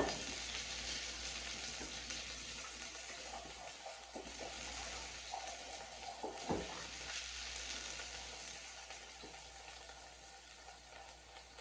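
Water splashes as dishes are rinsed.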